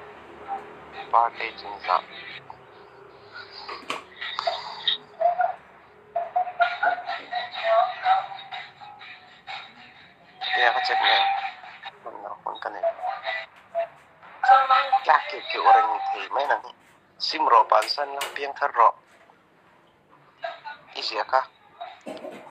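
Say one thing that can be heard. A young woman speaks close to a phone microphone.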